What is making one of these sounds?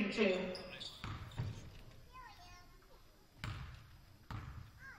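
A basketball bounces on a wooden floor with a few hollow thuds.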